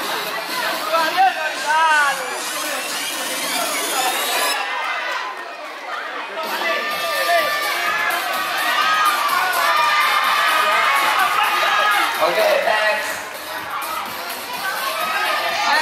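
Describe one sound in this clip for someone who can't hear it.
A large crowd of children chatters and cheers nearby.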